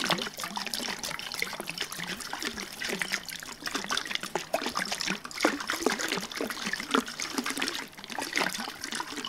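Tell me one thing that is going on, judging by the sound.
Fingers tap and scratch on a plastic jar close to a microphone.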